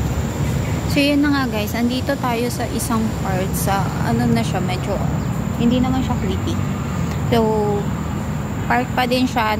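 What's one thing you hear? A young woman talks close by, with animation.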